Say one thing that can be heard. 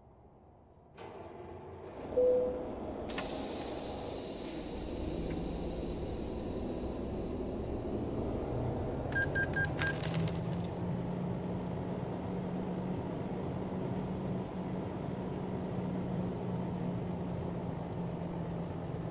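A truck's diesel engine starts and rumbles steadily, growing louder as the truck pulls away.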